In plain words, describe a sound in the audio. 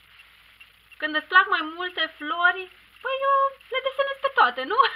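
A young woman speaks in a lively, sing-song voice close to a microphone.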